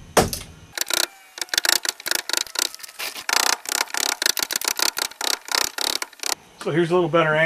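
Rapid tapping rattles on wood.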